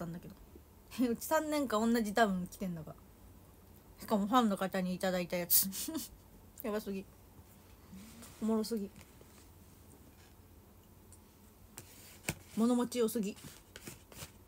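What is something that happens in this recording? A young woman talks casually and close to a microphone, in short bursts.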